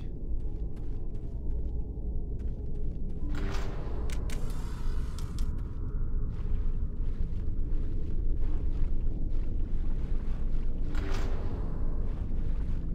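Footsteps thud steadily on a hard floor.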